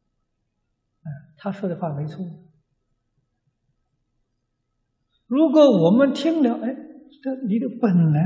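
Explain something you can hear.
An elderly man speaks calmly through a microphone, giving a talk.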